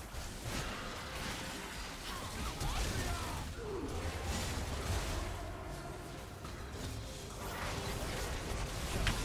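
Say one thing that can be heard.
Magic spells whoosh and burst in quick succession.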